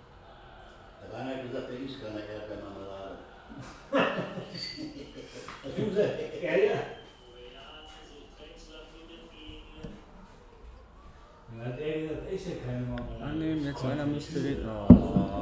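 Two men talk with animation, close to a microphone.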